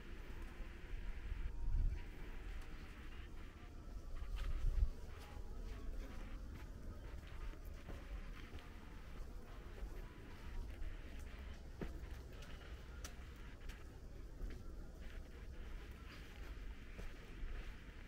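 Wind rumbles outdoors in gusts.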